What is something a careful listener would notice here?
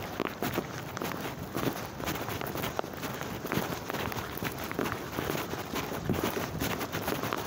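Footsteps tread on a gravelly path.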